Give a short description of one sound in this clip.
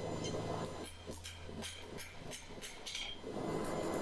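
A hammer strikes a metal rod on an anvil with sharp ringing clangs.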